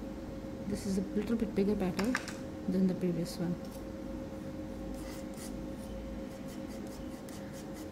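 A palette knife scrapes and taps softly on a hard surface.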